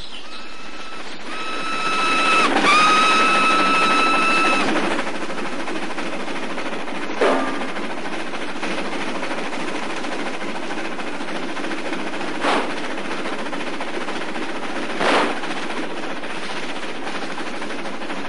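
A train rumbles along the tracks.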